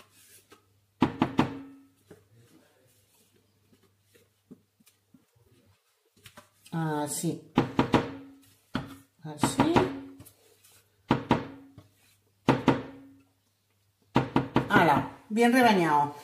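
A spatula scrapes and knocks against a metal jug.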